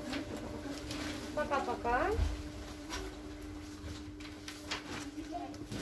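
Paper rustles as sheets are handled and turned.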